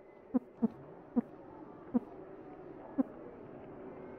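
Short, bright electronic blips sound one by one as text prints.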